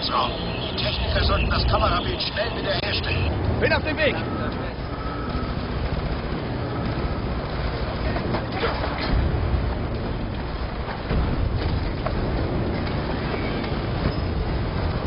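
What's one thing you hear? Explosions rumble and fires roar in the distance.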